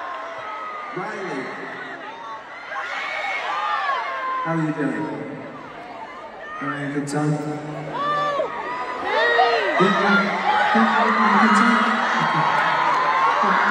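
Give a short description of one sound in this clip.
An electric guitar plays through loudspeakers.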